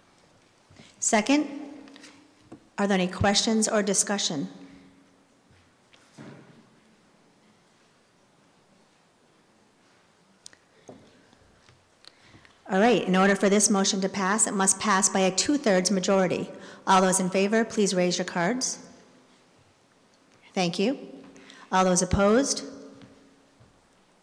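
A middle-aged woman speaks into a microphone in a large echoing hall, in bursts with pauses.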